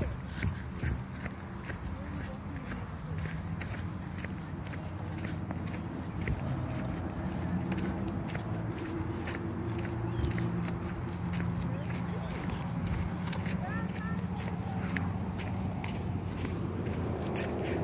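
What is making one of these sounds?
Footsteps walk steadily on a rubber running track.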